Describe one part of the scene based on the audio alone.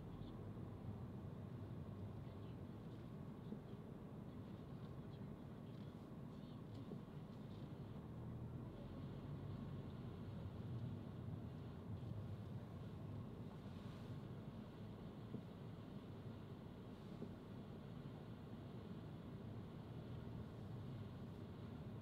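A car engine rumbles steadily while driving slowly along a street.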